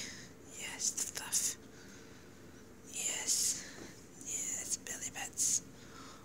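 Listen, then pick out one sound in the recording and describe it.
A hand rubs through a cat's thick fur with soft rustling.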